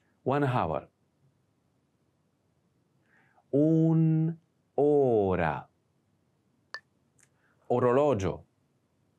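A man speaks clear, slow words close to a microphone, pausing between them.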